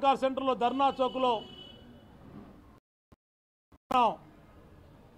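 A man speaks emphatically into a microphone.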